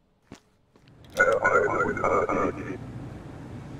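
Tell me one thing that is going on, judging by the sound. A young man laughs out loud.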